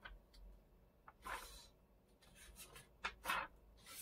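Sheet music pages rustle as they are turned.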